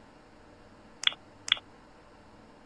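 Keypad buttons beep twice as a code is entered.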